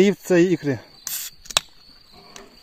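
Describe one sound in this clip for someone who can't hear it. A drink can pops and hisses open.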